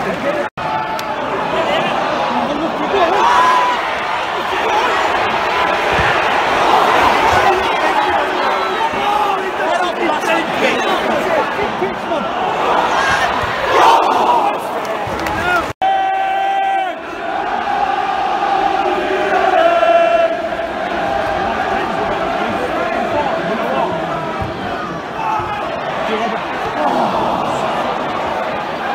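A large crowd of fans sings and chants loudly in an open stadium.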